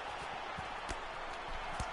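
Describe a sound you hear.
A kick lands with a dull thud.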